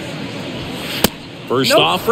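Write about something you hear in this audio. A ball pops into a catcher's mitt.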